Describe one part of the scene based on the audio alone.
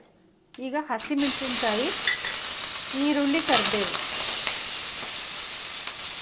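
Vegetables sizzle loudly in hot oil.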